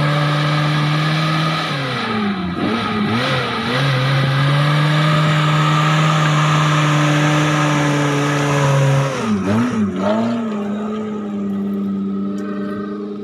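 An engine revs and labours, rising and falling in pitch.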